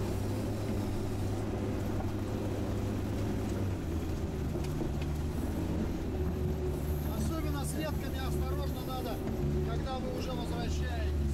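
A heavy vehicle's engine rumbles steadily, heard from inside the cab.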